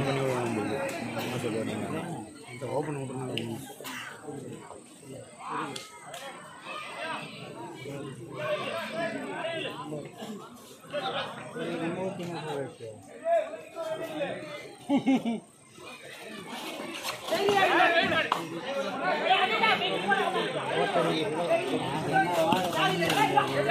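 A large crowd outdoors chatters and cheers loudly.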